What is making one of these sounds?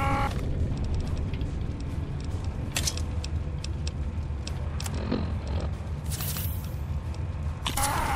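Soft electronic clicks tick as menu items are selected.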